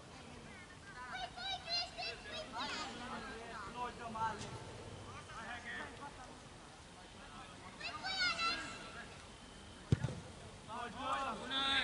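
Men shout to each other across an open field, some way off.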